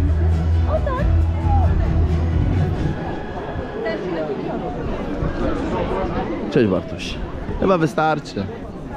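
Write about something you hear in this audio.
A crowd of adults and children chatters outdoors nearby.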